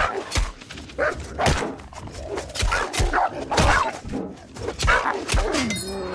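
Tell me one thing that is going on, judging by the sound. A wolf snarls and growls.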